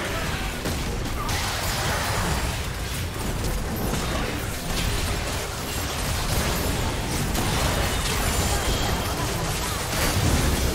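Magic blasts and weapon strikes crash together in a hectic video game battle.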